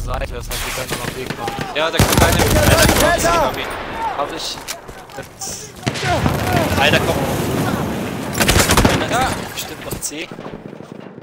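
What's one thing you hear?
Gunfire and explosions boom and crackle close by.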